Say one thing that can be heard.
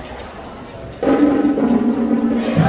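A marching band suddenly starts playing loudly.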